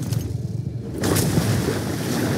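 Water splashes as a body drops into it.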